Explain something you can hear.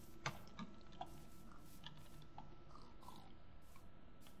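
Footsteps patter softly on grass.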